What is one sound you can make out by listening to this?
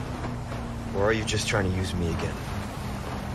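A young man speaks quietly and close.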